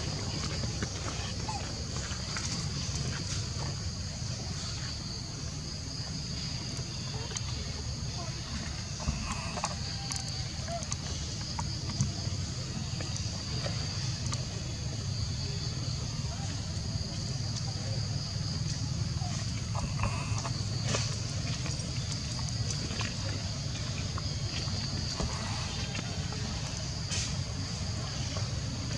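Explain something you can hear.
Young monkeys squeak and chatter softly.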